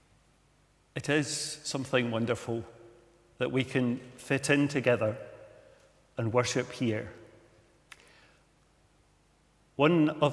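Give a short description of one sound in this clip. An elderly man speaks calmly and slowly into a microphone, with pauses, in a room with some echo.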